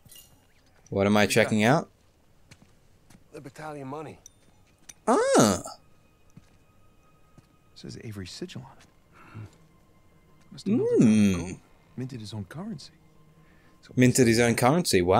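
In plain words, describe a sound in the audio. A second man answers in a relaxed voice.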